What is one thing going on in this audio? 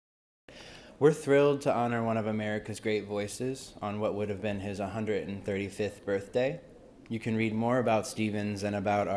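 A young man speaks calmly into a microphone, reading out.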